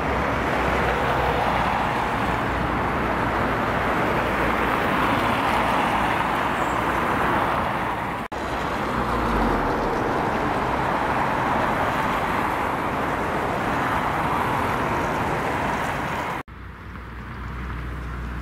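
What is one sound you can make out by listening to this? Wind blows hard and steadily outdoors.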